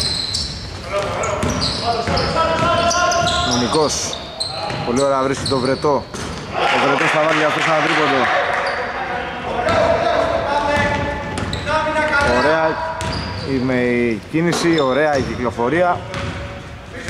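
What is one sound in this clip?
Men shout to each other across an echoing court.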